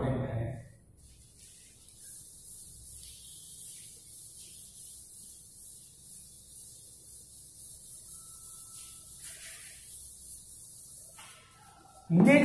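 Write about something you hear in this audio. A duster softly rubs and scrapes across a chalkboard.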